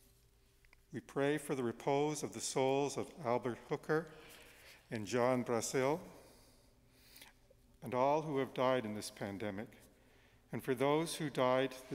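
An elderly man reads aloud slowly into a microphone in an echoing room.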